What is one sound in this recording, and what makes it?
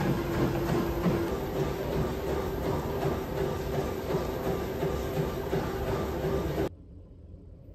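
Footsteps pound on a running treadmill.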